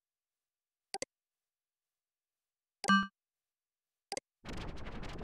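A game's interface gives short clicking beeps.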